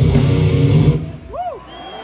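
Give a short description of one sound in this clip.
A live band plays loudly through big speakers and then stops.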